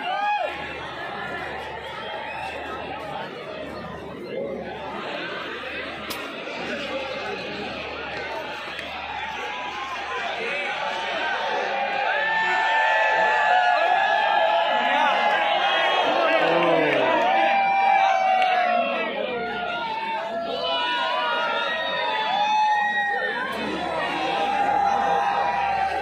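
A large stadium crowd cheers and chatters loudly all around.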